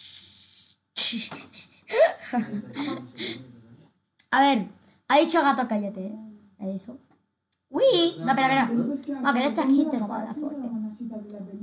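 A young girl talks with animation, close to a microphone.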